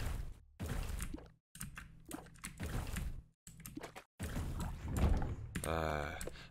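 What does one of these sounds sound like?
Video game sound effects pop and splat in quick bursts.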